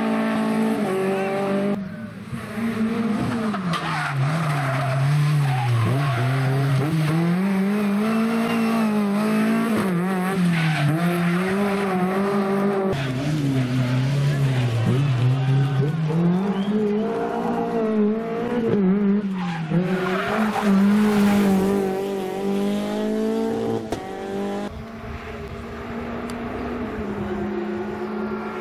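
A rally car engine roars loudly, revving up and down as it shifts gears.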